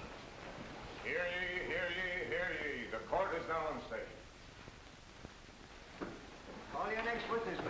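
A man speaks loudly and firmly in a large echoing hall.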